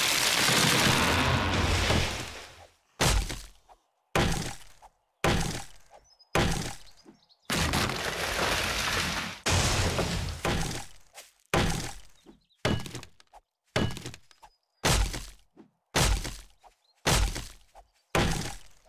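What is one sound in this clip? An axe chops into wood with sharp, regular thuds.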